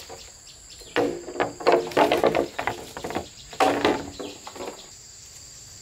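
Bamboo poles clatter and knock hollowly as they are dropped onto a pile.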